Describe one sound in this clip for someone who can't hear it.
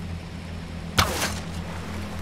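A bowstring snaps as an arrow is released.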